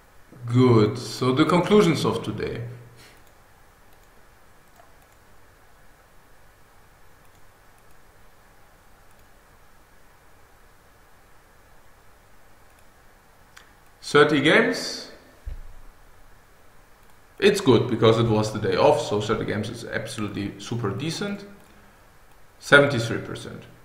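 A man talks calmly into a close microphone, in bursts with pauses.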